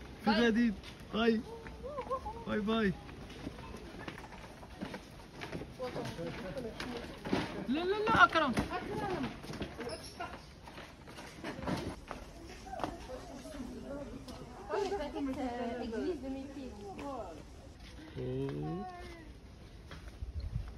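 Children call out and chatter nearby.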